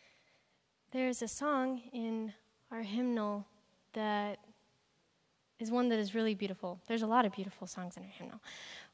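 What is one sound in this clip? A woman sings with a held, wavering voice.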